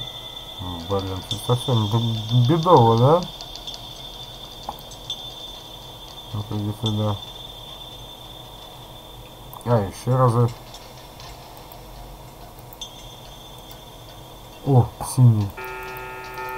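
An elderly man's voice moans and mutters in short, wavering bursts.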